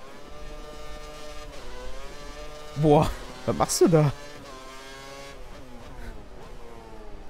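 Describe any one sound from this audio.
A racing car engine screams at high revs and drops in pitch as it shifts down through the gears.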